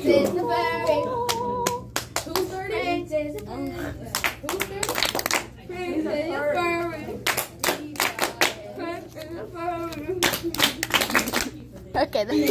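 Hands clap together several times.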